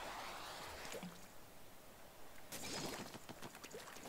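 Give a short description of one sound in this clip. Ink sprays and splatters wetly.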